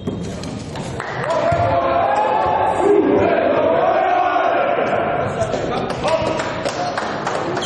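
Young players cheer loudly in a large echoing hall.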